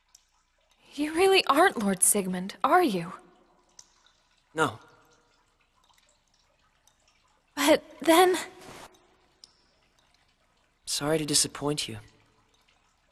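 A young man speaks quietly and gently.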